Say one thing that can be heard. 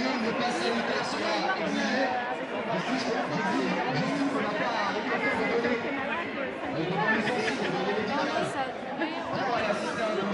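A crowd of men and women chatters and calls out all around, close by, outdoors.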